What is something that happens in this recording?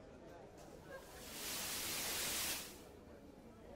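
A television hisses with loud static.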